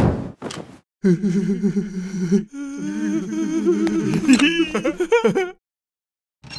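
A cartoon man speaks in a frightened, wavering voice.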